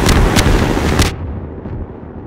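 A loud blast booms close by.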